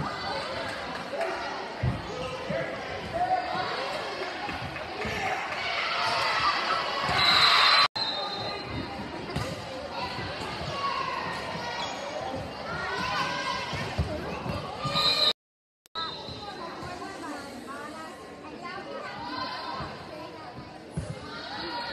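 A crowd in a large echoing gym cheers and shouts during a volleyball rally.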